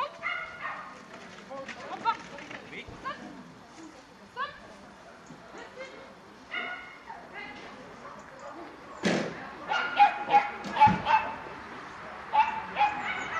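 A woman calls out commands to a dog outdoors.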